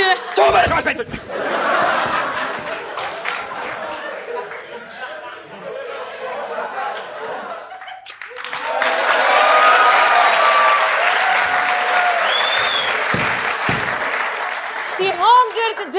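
An audience laughs and cheers.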